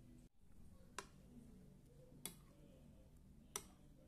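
A metal spoon clinks sharply against a bowl a few times.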